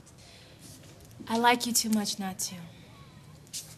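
A young woman speaks with feeling close by.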